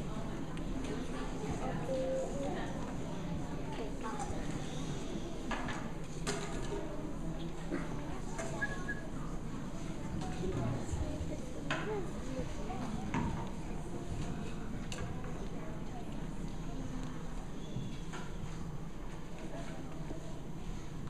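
A crowd of children chatters and murmurs in a large echoing hall.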